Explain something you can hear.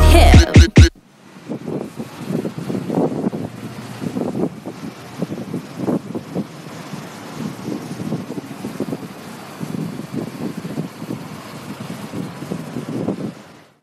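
A bus engine rumbles nearby.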